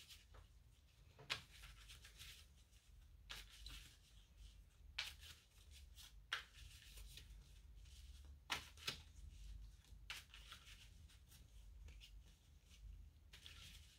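Playing cards riffle and slap softly as they are shuffled by hand.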